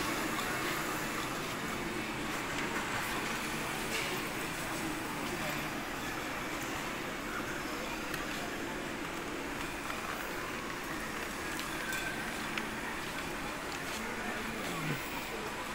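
A crowd of shoppers murmurs indistinctly in a large indoor hall.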